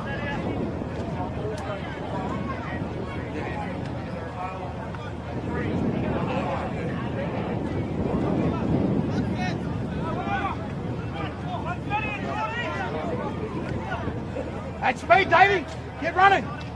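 Spectators chatter at a distance outdoors.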